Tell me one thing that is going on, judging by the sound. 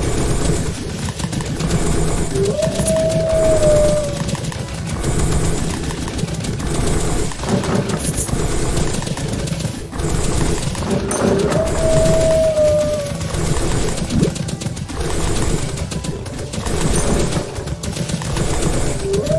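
Video game combat sound effects clash and zap rapidly.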